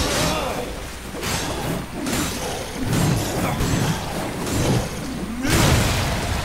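Heavy blades swish and strike in a fast fight.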